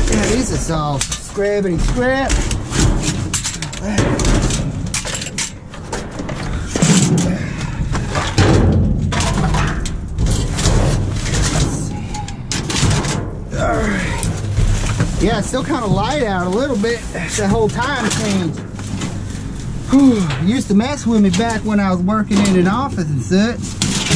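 Cardboard and paper rustle and crinkle as rubbish is shifted about.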